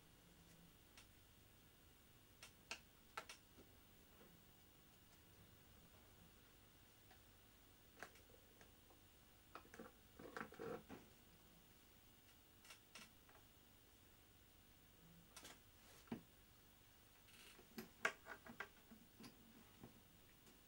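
Small plastic parts click and tap.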